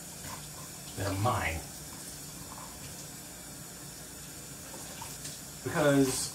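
Dishes clink softly in a sink.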